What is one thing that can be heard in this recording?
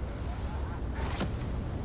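A figure drops down and lands with a short rushing whoosh.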